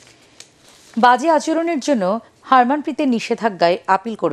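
A young woman reads out calmly and clearly into a microphone.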